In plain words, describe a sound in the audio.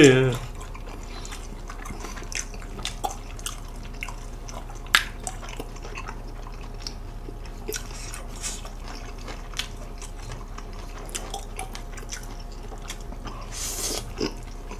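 Noodles are slurped loudly close to a microphone.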